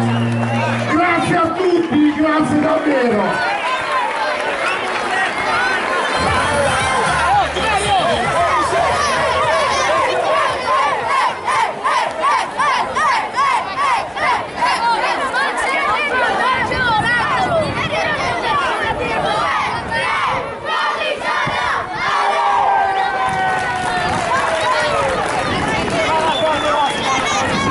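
A crowd of young children shouts and cheers outdoors.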